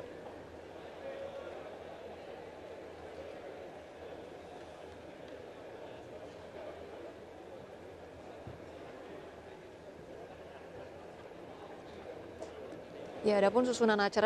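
A crowd of people murmurs quietly in the background.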